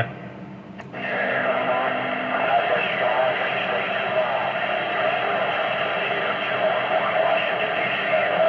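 A two-way radio hisses and crackles with static through its loudspeaker.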